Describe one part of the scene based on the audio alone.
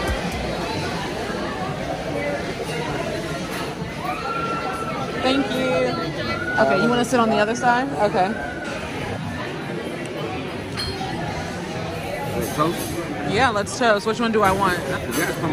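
Many people chatter in a busy, echoing room.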